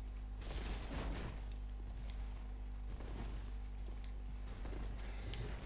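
A sword clangs sharply against a metal shield.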